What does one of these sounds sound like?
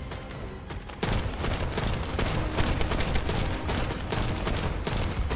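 Rapid gunfire crackles and booms.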